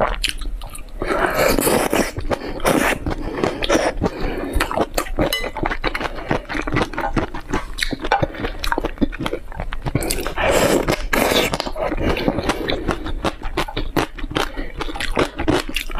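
A woman slurps and chews food noisily close to a microphone.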